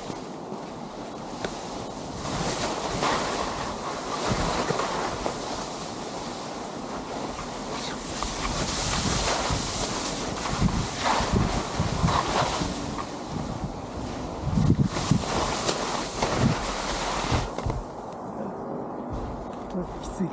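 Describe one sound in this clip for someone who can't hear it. Wind rushes past closely.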